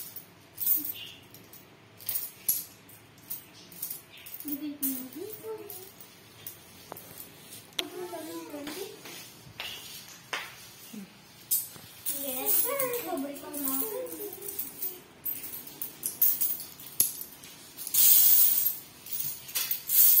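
Coins clink and jingle.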